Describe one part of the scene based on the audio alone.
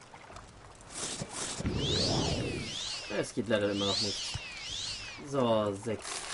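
A magic spell shimmers and tinkles with rising and falling chimes.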